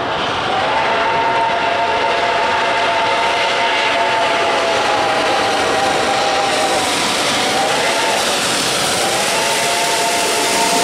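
A steam locomotive whistle blows loudly in long blasts.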